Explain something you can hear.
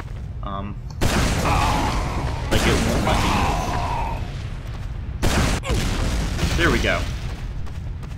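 Rockets explode with loud booms.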